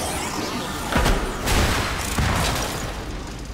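Metal scrapes and sparks crackle in a sudden burst.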